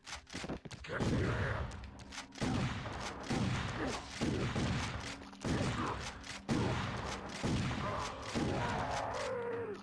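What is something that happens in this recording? Shotgun blasts boom in quick succession.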